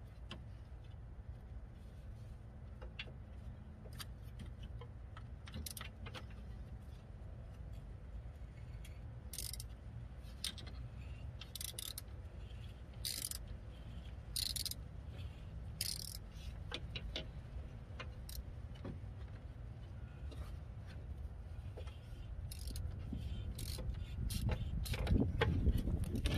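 A wrench clicks and scrapes against metal parts under a car.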